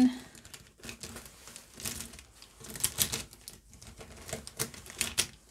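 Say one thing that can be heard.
Marker pens rattle and clink as a hand rummages through a soft pouch.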